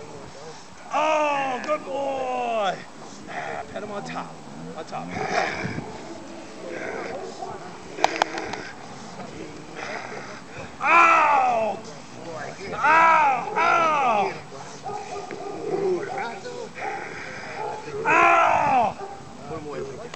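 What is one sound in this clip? A dog lets out loud, high whining cries that fall in pitch.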